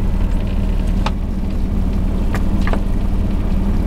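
Net floats knock against the side of a boat.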